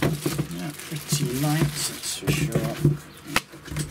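A wrapped object is set down on a hard counter with a soft thud.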